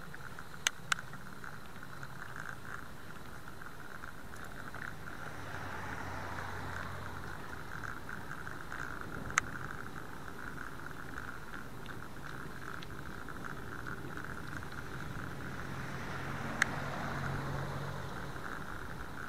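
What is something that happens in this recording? Bicycle tyres hum on the pavement.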